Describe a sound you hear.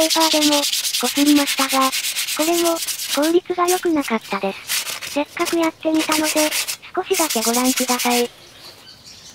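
A brush scrubs a metal rack.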